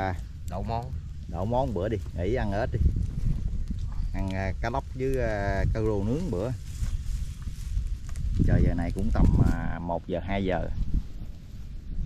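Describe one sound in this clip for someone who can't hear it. A middle-aged man speaks calmly close by.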